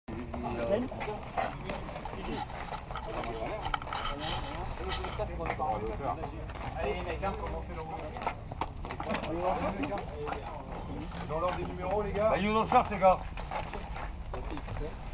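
Several men talk and call out nearby, outdoors.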